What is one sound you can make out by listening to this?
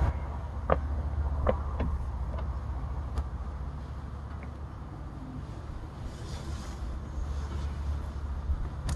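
A bee smoker's bellows puff air.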